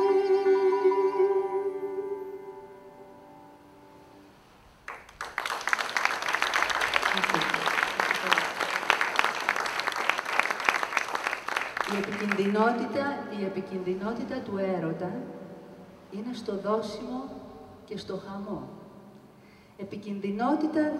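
A woman sings into a microphone, holding long notes.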